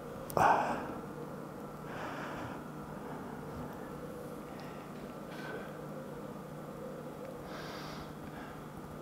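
A man exhales forcefully with each effort.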